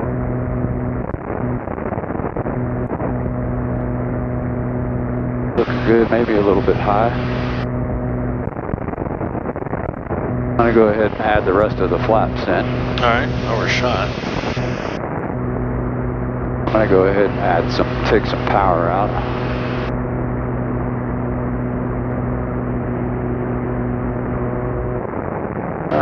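A small propeller plane's engine drones steadily close by.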